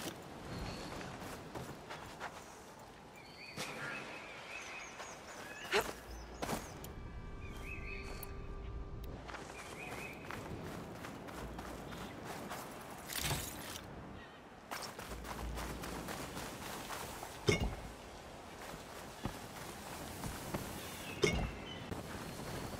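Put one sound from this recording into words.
Footsteps run across sand.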